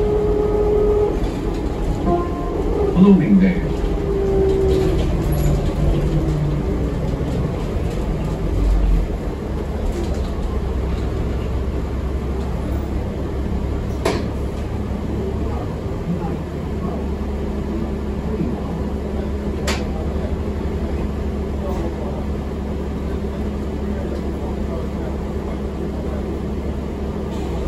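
Loose bus fittings rattle and click now and then.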